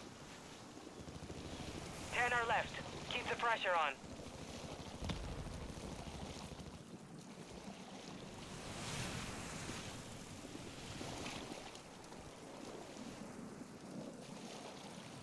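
Water splashes and sloshes with steady swimming strokes.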